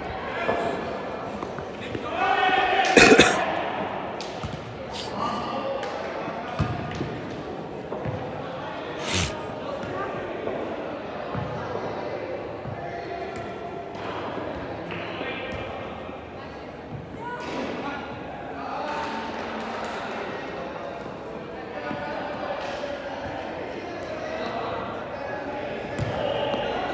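Young men shout and call out to each other across a large echoing indoor hall.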